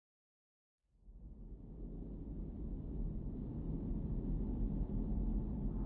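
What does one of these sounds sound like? Wind rushes steadily, growing louder.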